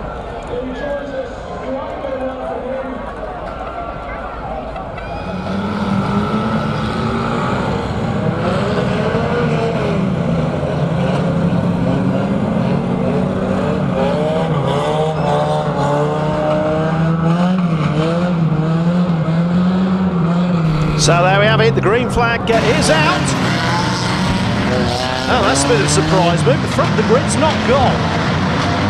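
Engines roar and rev loudly.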